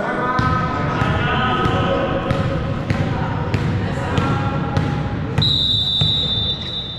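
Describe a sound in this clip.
Young players call out to each other.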